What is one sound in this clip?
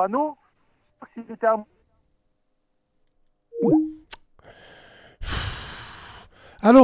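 A man speaks into a close microphone in short bursts.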